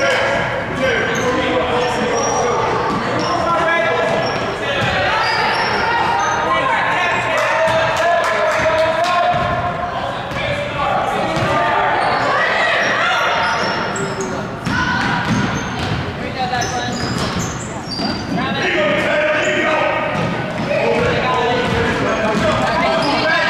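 Voices of a small crowd chatter and call out in a large echoing gym.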